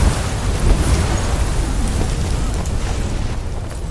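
Footsteps run quickly over stone and dirt.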